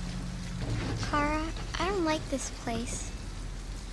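A young girl speaks with an anxious, high voice.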